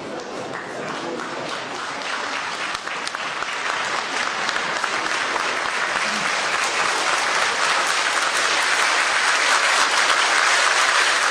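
A large audience applauds, growing louder.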